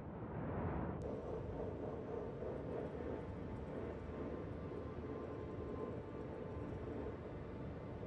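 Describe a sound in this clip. A spacecraft's engines hum steadily, heard from inside the cockpit.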